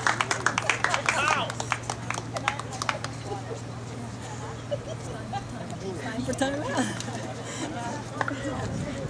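Women talk and laugh close by, outdoors.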